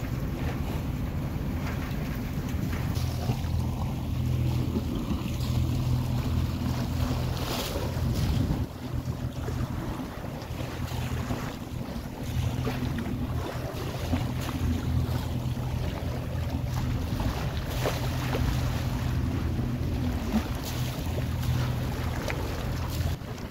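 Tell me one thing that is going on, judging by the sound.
Wind blows and buffets steadily, outdoors in open air.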